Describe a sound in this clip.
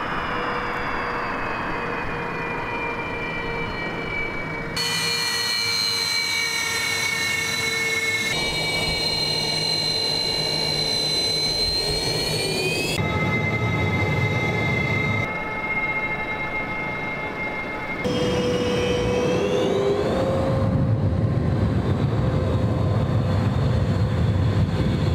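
A jet engine rumbles and roars nearby.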